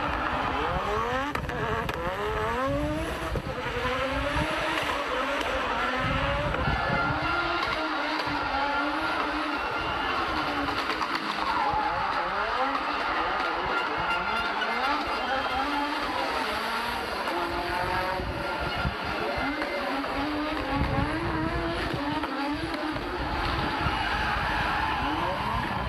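A rally car engine revs hard and screams up and down through the gears.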